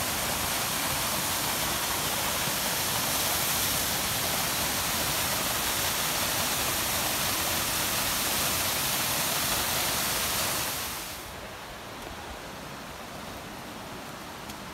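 A waterfall roars steadily nearby, then drops away to a softer rush of water.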